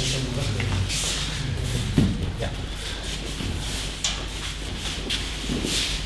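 Bare feet shuffle and slide across mats.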